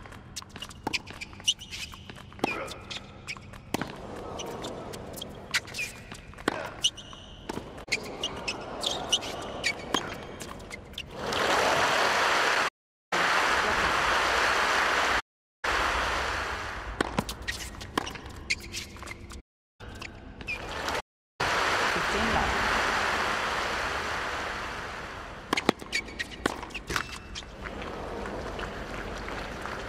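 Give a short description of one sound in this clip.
Tennis balls are struck with sharp pops, back and forth.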